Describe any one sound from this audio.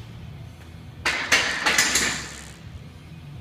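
A barbell drops to the floor and bounces with loud clanks.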